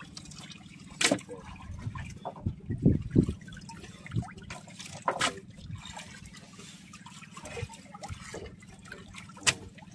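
Wet fish slap and knock against each other in a plastic box as hands sort them.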